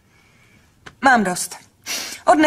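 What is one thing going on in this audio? A young woman speaks nearby.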